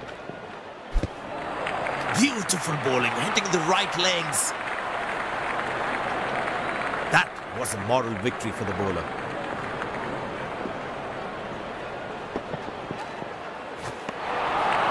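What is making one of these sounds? A cricket bat strikes a ball.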